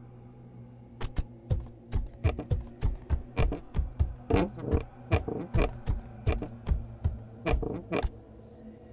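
Footsteps thud steadily across a wooden floor.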